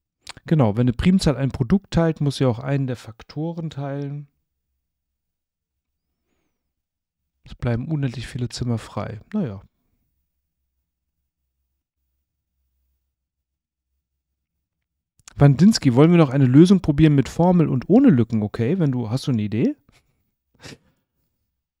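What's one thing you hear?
A man talks calmly into a close microphone, pausing between phrases.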